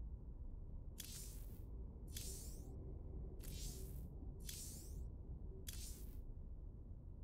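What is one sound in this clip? A game's menu makes short swishing sounds as tabs are picked, several times.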